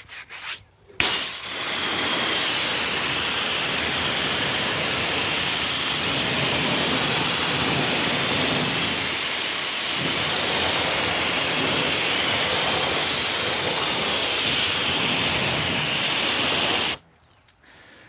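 A pressure washer sprays water with a loud steady hiss.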